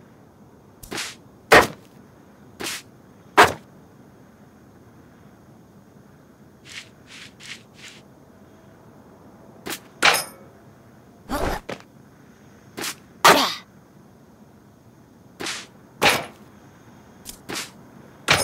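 Light footsteps and landing thuds sound in short bursts.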